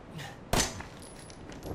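A revolver fires a single loud shot.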